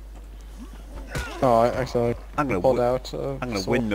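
A wooden club thuds against a body.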